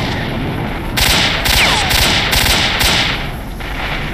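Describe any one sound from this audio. Rifle shots ring out in quick succession and echo.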